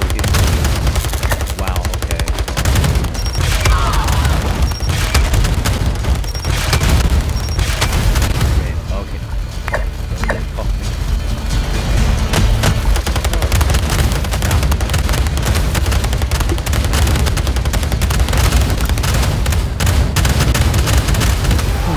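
Explosions boom and crackle in a game battle.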